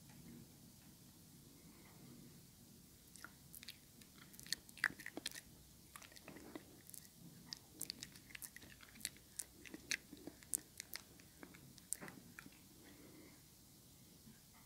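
A young woman whispers softly up close.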